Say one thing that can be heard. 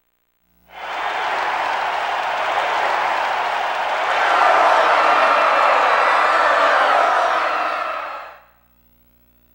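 A large crowd cheers and roars loudly.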